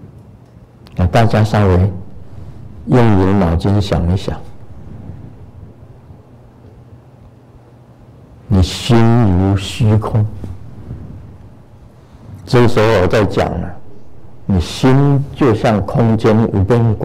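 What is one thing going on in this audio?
An elderly man speaks slowly and calmly into a microphone, in bursts with long pauses.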